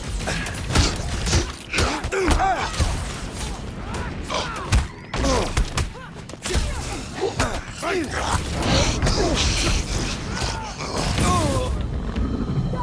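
Blows and impacts thud and clatter during a fight.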